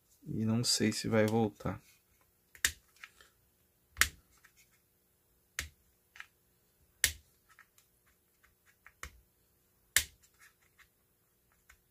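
A wooden stick taps and scrapes against a plastic case.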